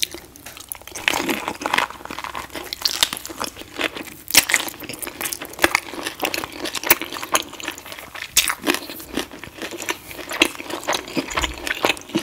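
A woman chews wet, crunchy food close to a microphone.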